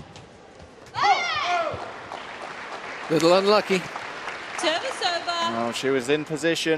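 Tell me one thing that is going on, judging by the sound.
A crowd cheers and applauds in a large echoing hall.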